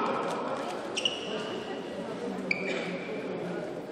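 Sports shoes squeak sharply on a hard indoor court floor.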